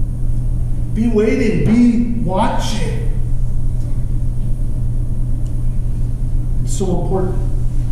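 A man speaks calmly in a room with some echo.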